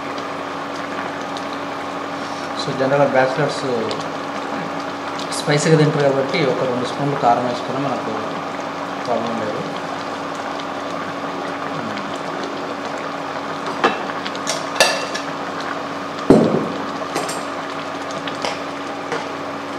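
A pot of stew bubbles and simmers.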